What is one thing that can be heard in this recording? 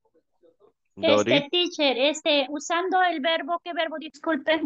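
A man speaks clearly and at a steady pace over an online call.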